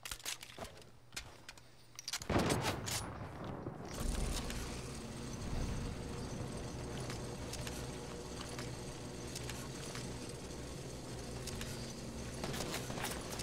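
A zipline hums and rattles steadily.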